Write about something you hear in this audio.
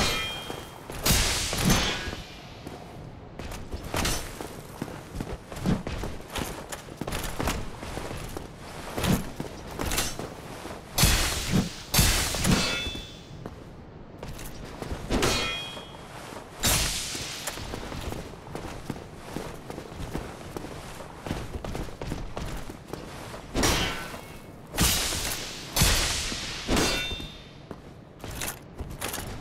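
Metal swords clash and strike armour in sharp bursts.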